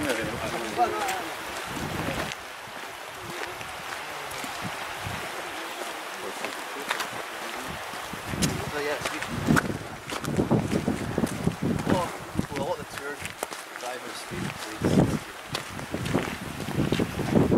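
A shallow stream trickles over stones.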